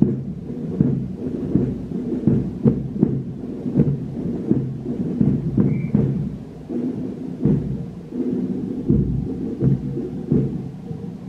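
Footsteps shuffle on paving stones.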